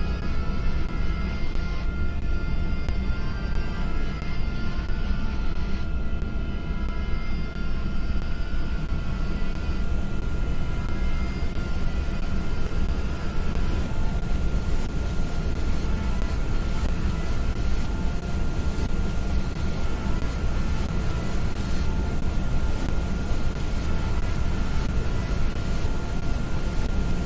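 A plane's engines roar steadily as it flies.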